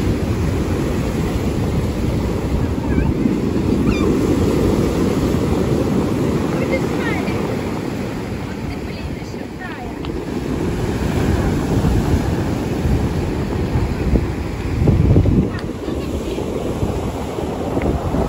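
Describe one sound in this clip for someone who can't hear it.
Waves crash and roar steadily onto a shore.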